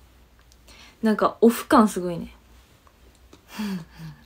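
A young woman speaks brightly and close to a microphone.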